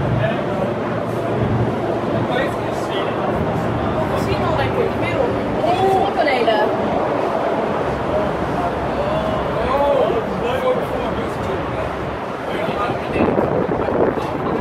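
Wind gusts steadily outdoors.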